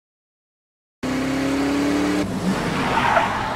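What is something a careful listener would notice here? A car engine rumbles as the car drives off on a wet road.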